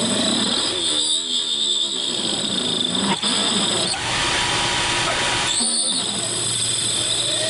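A metal lathe hums and whines steadily as it cuts metal.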